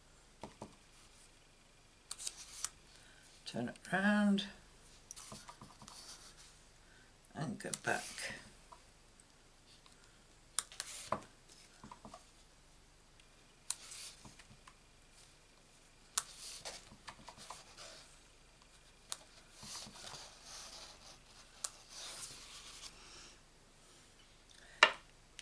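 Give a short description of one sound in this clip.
Sheets of paper rustle and slide as they are moved around.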